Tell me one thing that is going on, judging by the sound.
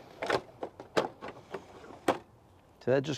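Plastic engine parts click and knock as hands handle them.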